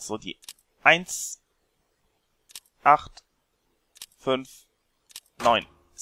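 Keypad buttons beep as they are pressed.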